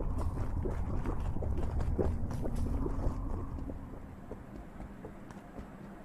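Small footsteps patter quickly.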